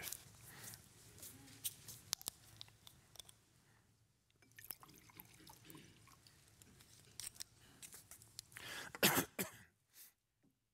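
A plastic bottle crinkles and its cap twists open.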